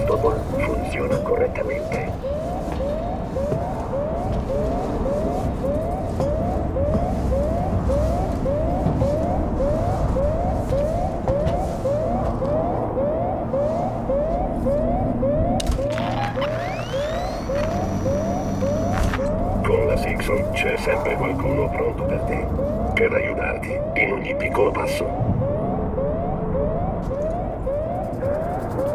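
A motion tracker beeps in a fast, steady rhythm.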